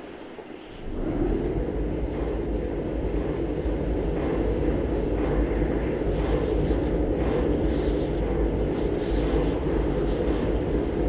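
A construction lift's motor hums steadily as the cage moves.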